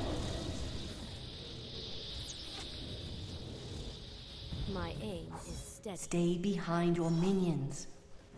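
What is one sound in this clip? Electric spells crackle and zap in a game battle.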